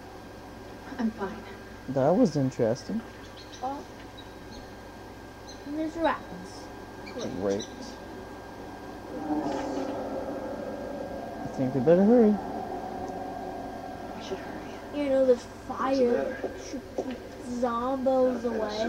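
A young woman speaks in a tense, hushed voice nearby.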